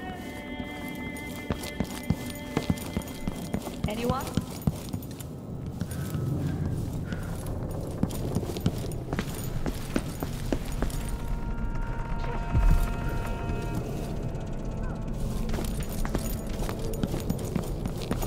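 Footsteps tap quickly across hard floors and stairs.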